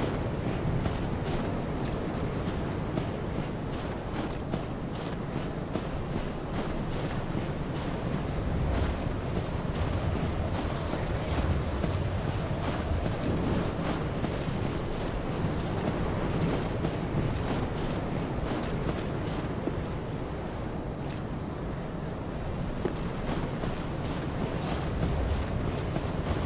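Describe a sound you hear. Armoured footsteps crunch quickly over rough ground.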